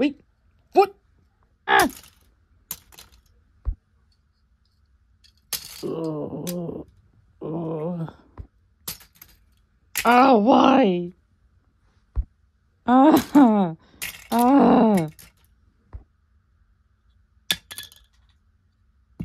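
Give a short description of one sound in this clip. Small plastic toy pieces clatter as they drop onto a pile.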